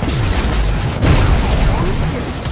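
A huge explosion booms and roars.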